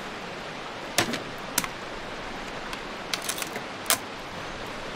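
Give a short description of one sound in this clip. A wooden crate cracks and knocks as it is broken apart.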